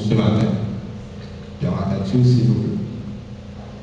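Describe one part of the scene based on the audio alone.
A man speaks through a microphone over loudspeakers.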